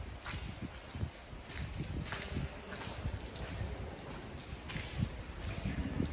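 Footsteps crunch on gravel and rubble in an echoing tunnel.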